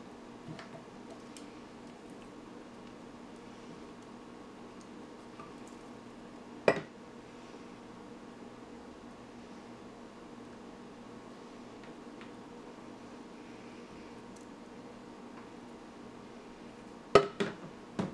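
A plastic spatula scrapes thick paste inside a blender jug.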